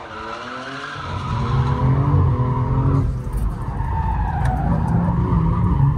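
An engine roars with a deep rumble from inside a car.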